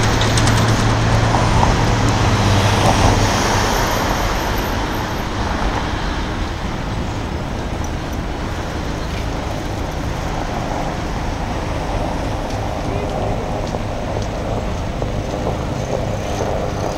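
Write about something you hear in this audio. Traffic rumbles steadily on a nearby road.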